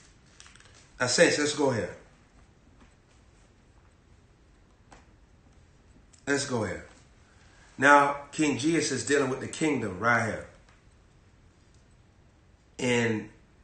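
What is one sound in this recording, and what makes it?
A young man reads aloud close to a microphone, in short bursts with pauses.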